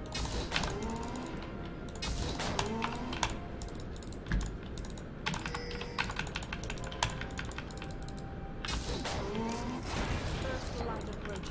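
Video game spells whoosh and clash in quick bursts.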